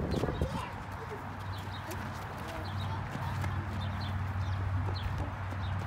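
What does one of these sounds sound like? Footsteps crunch on gravel as children run.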